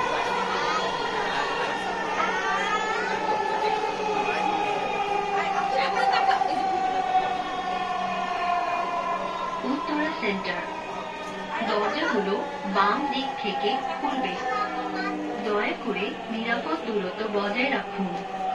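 A train hums and rumbles steadily on its track.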